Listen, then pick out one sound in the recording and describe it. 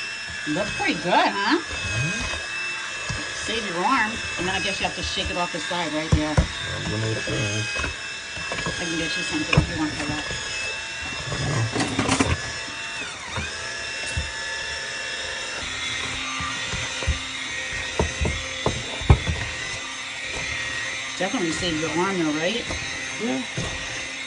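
A hand blender whirs steadily.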